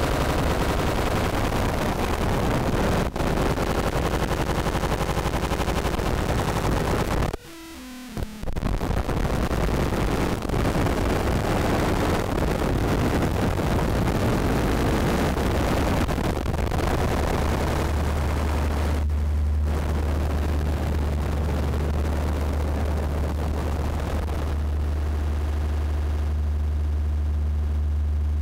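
Harsh, noisy electronic sound roars steadily from an electronic instrument, cutting out briefly once.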